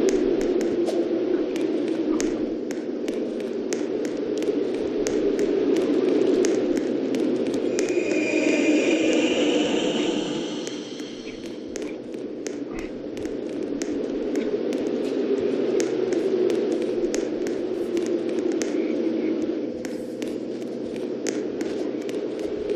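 Footsteps tap steadily on a soft floor.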